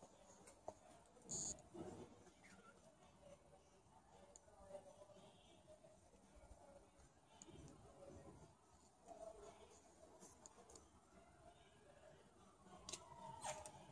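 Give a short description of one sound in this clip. Plastic hangers click against a metal rail.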